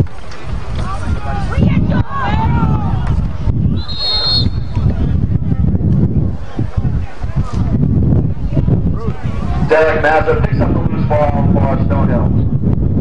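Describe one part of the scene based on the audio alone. Players and spectators shout and call out across an open field.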